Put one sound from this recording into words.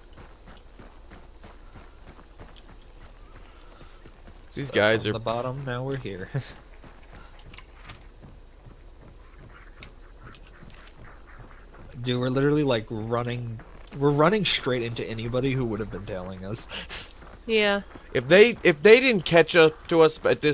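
Footsteps tread on dirt and wooden boards.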